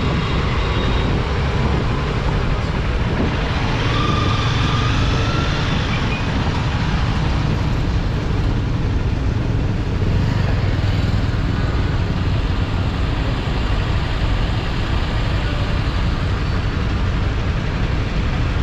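A motorcycle engine idles and rumbles close by.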